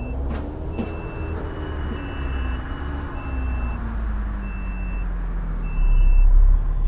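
A bus engine winds down as the bus slows to a stop.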